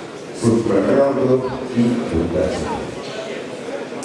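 A man announces loudly through a microphone in an echoing hall.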